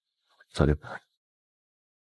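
A young man speaks softly.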